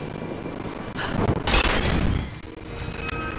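Fire bursts into flame with a loud roar.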